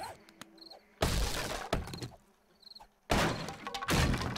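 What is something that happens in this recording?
A stone axe strikes a wooden door with heavy thuds.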